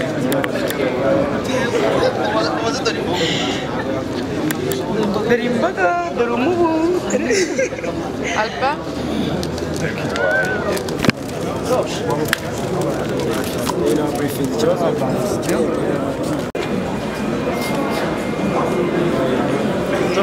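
A crowd of men and women chatter and cheer outdoors.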